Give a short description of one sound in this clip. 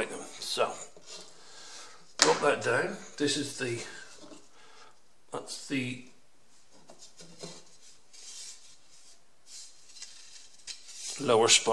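Thin wooden strips knock and rub against a table.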